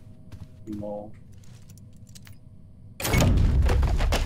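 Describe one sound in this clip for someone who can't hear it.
A padlock clicks open.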